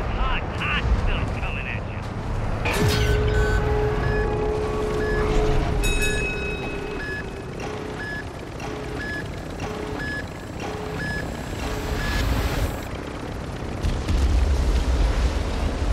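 A heavy armoured vehicle's engine rumbles low and steadily.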